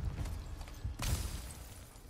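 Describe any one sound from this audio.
An axe strikes frozen ground with a sharp crack.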